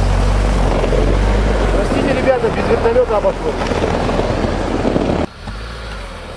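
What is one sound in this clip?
An engine revs loudly close by as a vehicle drives past.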